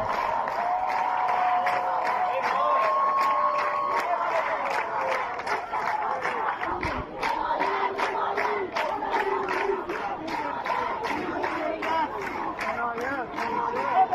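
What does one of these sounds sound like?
A large crowd claps in a steady rhythm.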